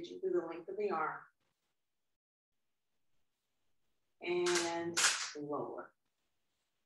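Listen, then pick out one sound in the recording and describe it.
A woman speaks calmly, giving instructions nearby.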